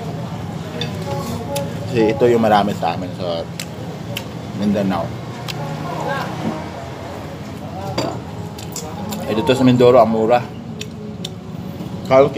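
A woman chews food noisily with her mouth open.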